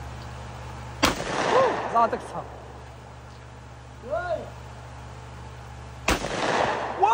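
Gunshots crack nearby, each followed by a short echo.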